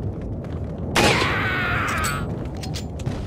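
A rifle fires a single loud shot.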